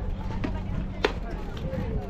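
A softball smacks into a catcher's glove.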